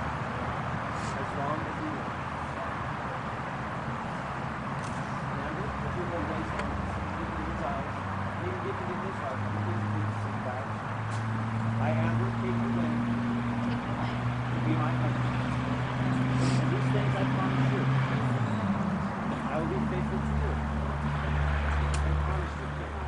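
A young woman laughs and speaks nearby.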